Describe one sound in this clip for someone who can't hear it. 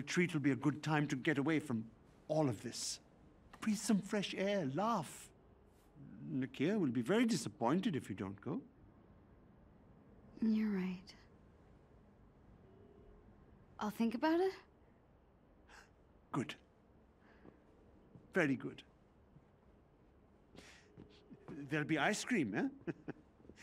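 A middle-aged man speaks warmly and encouragingly, close by.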